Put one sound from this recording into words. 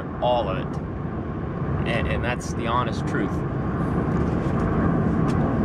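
A car engine hums and tyres rumble steadily inside a moving car.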